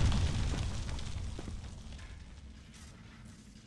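A deep explosion rumbles and slowly fades.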